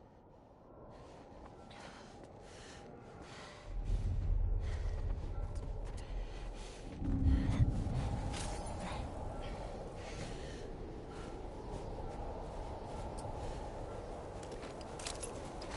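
Soft footsteps crunch slowly through snow and debris.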